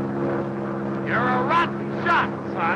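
A man talks.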